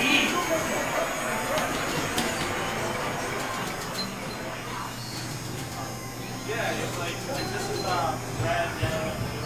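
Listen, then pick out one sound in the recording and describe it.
Arcade machines chime and play electronic jingles all around.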